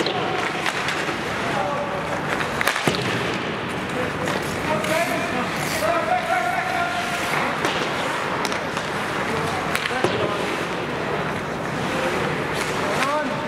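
Skate blades scrape and hiss on ice.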